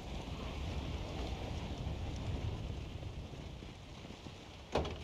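Fires crackle and roar steadily.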